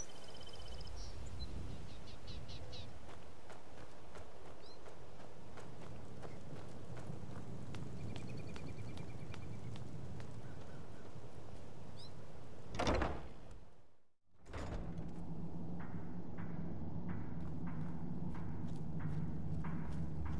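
Footsteps crunch steadily on gravel and stone.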